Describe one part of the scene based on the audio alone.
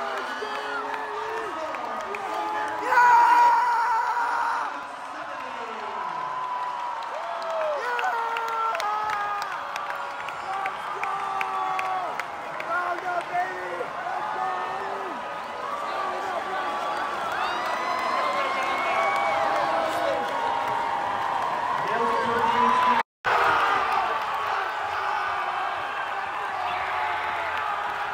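A large crowd cheers and shouts loudly in a big echoing arena.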